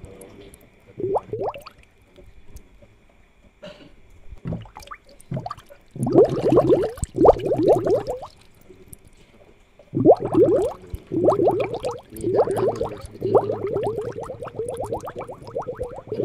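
Air bubbles gurgle and burble in water in quick bursts.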